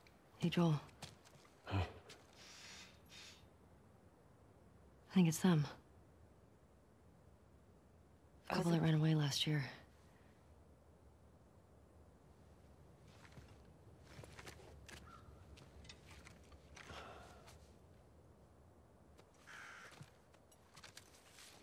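A young woman speaks briefly and quietly into a close microphone.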